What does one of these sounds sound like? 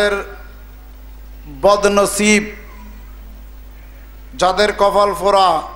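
A man preaches into a microphone in a chanting, drawn-out voice, with pauses between phrases.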